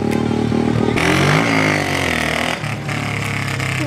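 A dirt bike engine revs and rises in pitch as the bike rides past.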